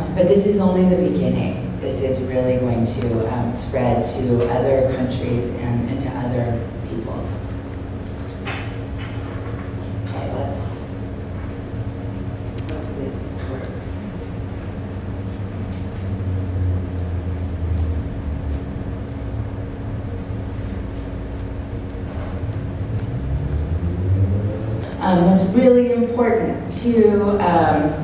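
A woman speaks into a microphone over a loudspeaker in an echoing hall.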